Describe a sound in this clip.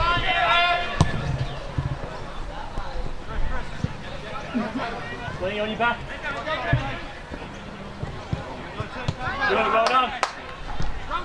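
A football thuds as it is kicked.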